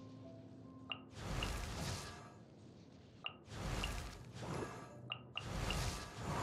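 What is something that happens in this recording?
A soft click sounds.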